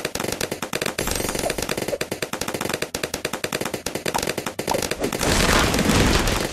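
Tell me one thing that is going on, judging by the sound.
Quick game sound effects pop and click rapidly.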